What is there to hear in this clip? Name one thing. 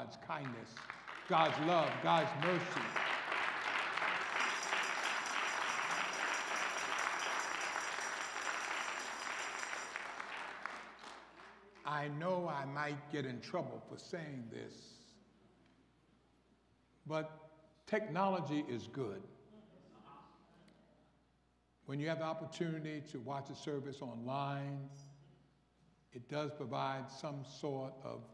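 A man speaks through a microphone in a large echoing hall, with pauses between phrases.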